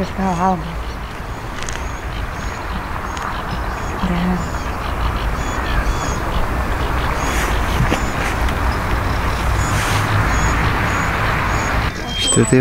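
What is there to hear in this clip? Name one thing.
Water laps and ripples gently close by.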